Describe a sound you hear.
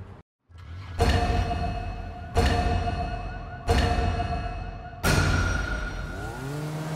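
Countdown beeps sound one after another.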